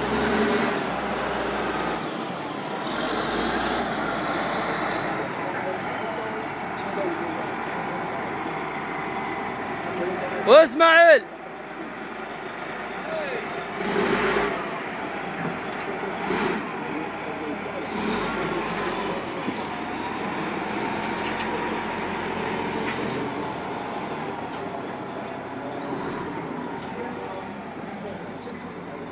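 A large diesel wheel loader engine runs with a low rumble.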